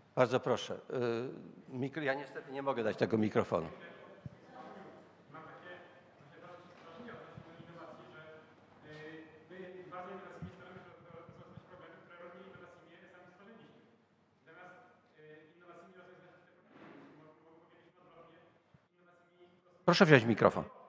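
A man speaks through a microphone over loudspeakers in a large echoing hall.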